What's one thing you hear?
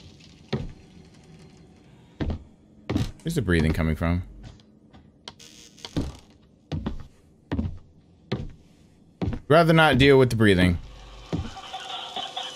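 Footsteps thud slowly on a wooden floor.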